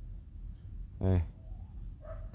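A dog gives a single loud bark nearby.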